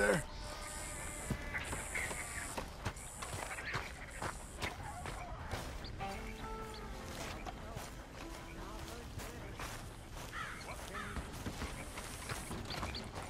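Footsteps thud on soft ground at a walking pace.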